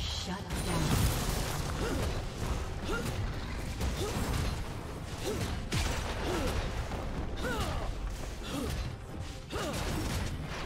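Video game battle effects clash and whoosh in quick bursts.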